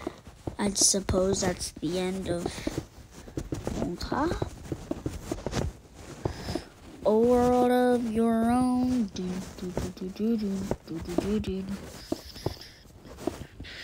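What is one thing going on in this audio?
Blocks are set down with soft, short thuds.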